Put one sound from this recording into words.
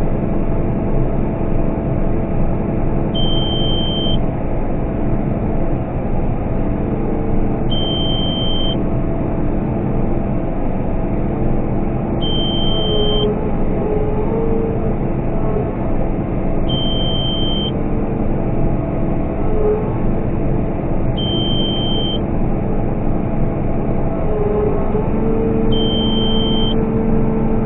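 A combine harvester's engine drones loudly and steadily from inside the cab.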